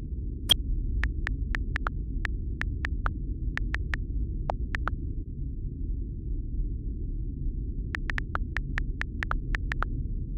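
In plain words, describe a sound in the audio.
Phone keyboard taps click quickly in short bursts.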